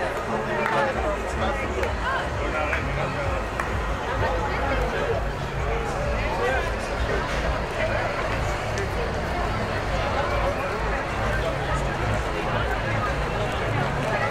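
Footsteps tap on paving stones close by.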